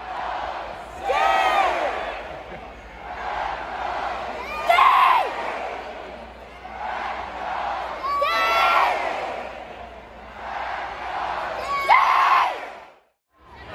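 A young boy shouts loudly close by.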